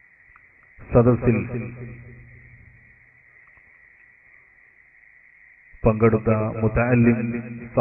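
A man speaks forcefully into a microphone over a loudspeaker, echoing in a large hall.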